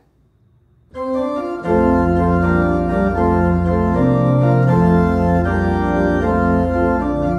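An organ plays a full, sustained hymn.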